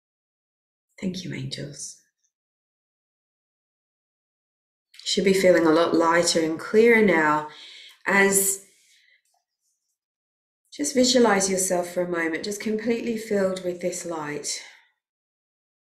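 A middle-aged woman speaks calmly and slowly over an online call, with long pauses.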